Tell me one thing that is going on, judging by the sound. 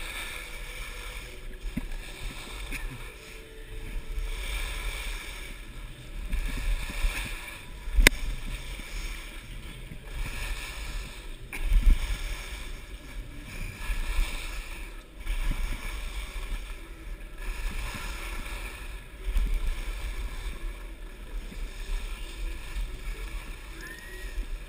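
Wind rushes past a close microphone.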